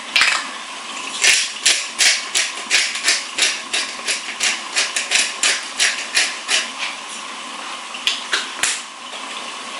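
A pepper grinder crunches in quick, rhythmic bursts.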